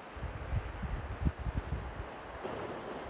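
Wind gusts outdoors, buffeting in low rumbles.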